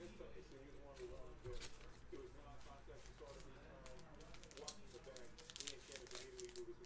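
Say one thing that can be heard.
Cards and plastic wrappers rustle and click as they are handled.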